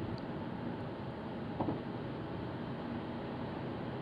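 A passing car whooshes by close alongside.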